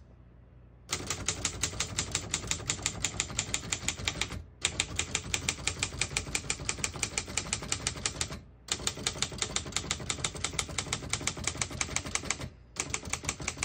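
A typewriter clatters with fast, even keystrokes.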